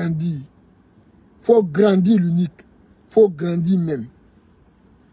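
A man speaks calmly and close by, in short phrases.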